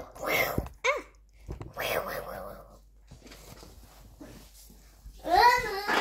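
A young girl speaks close by in a high, lively voice.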